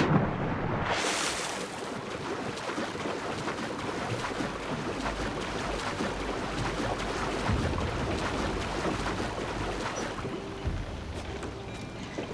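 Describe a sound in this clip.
Water sloshes and splashes with steady swimming strokes.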